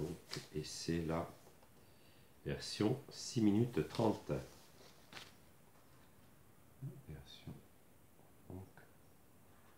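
An older man speaks calmly close by, in short bursts with pauses.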